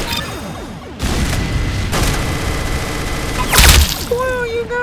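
A minigun whirs and rattles.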